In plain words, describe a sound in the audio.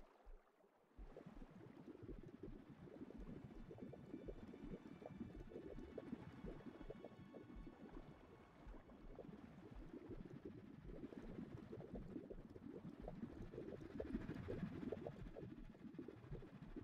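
Water churns and rumbles low underwater.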